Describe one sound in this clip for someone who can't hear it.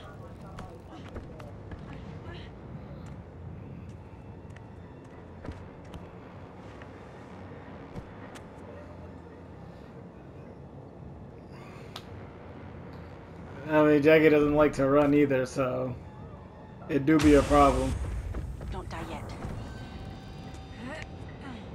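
Slow footsteps thud on a creaky wooden floor.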